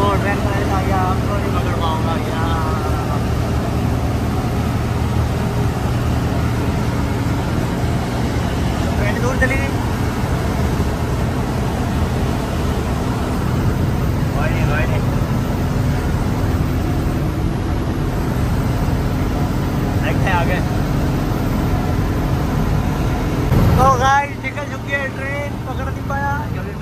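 A truck engine rumbles steadily as the truck drives along a road.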